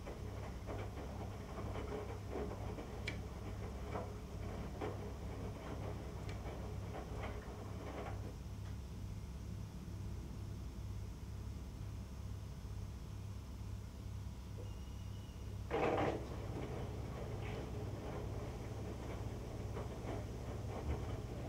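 Laundry thumps and swishes as it tumbles inside a washing machine drum.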